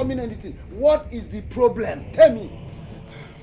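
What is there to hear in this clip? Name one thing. A middle-aged man shouts angrily.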